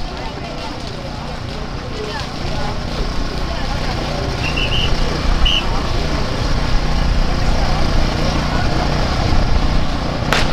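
A crowd of people chatters and walks along a road outdoors.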